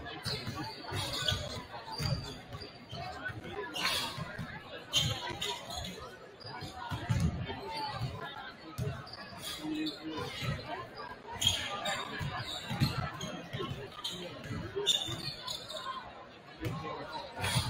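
Sneakers squeak on a gym floor.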